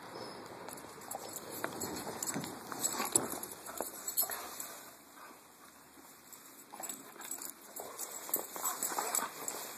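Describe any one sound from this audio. A dog snaps and chews at a stick.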